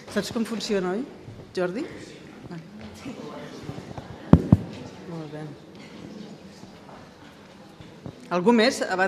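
Women laugh nearby.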